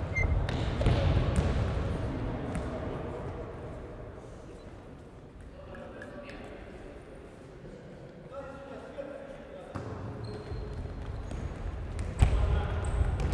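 Shoes squeak and thud on a hard floor in a large echoing hall.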